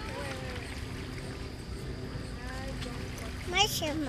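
A little girl babbles close by.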